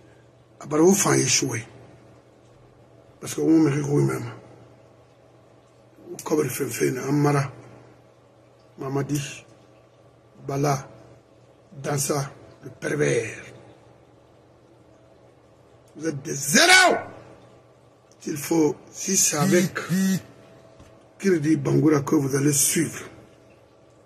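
An elderly man talks with animation into a close microphone, in short bursts with pauses.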